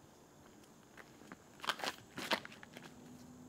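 Footsteps crunch on dry leaves during a quick run-up.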